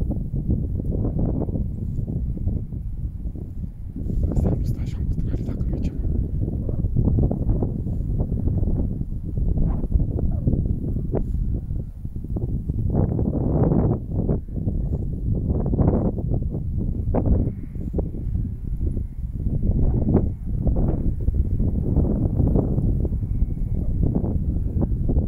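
A dog pants quickly close by.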